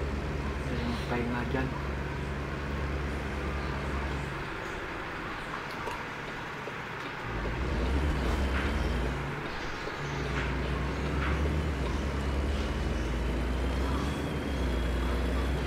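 A truck engine rumbles low and steadily, dropping off briefly and then surging again.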